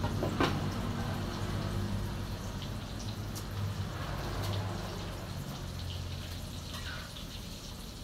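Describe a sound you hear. Gas burners hiss and roar steadily.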